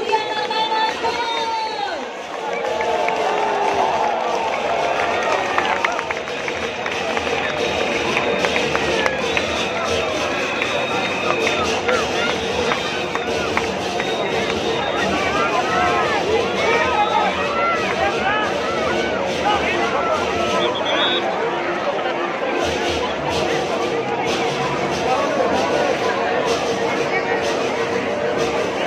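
A large crowd cheers and shouts all around, outdoors.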